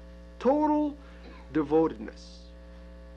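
A man speaks briefly and calmly, close to the microphone.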